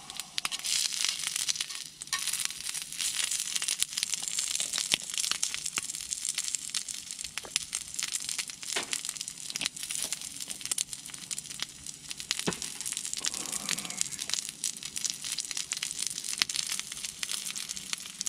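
Utensils clink and tap against a metal grill pan.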